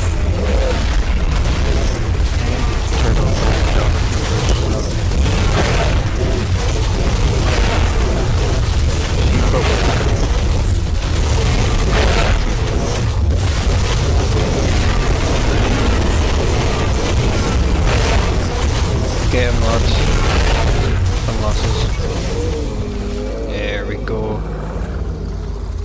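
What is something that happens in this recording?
Creatures fight with heavy bites and thudding impacts.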